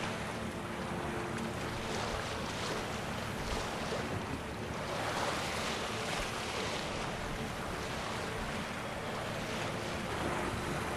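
Waves splash against a small sailing boat.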